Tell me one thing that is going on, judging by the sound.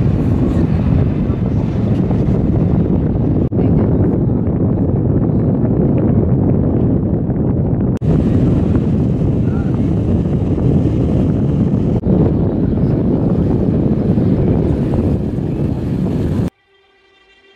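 Wind rumbles loudly outdoors on open water.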